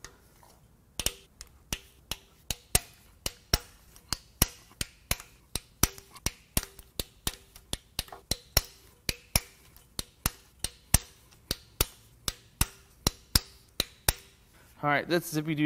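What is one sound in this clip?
A ratchet wrench clicks rapidly and steadily.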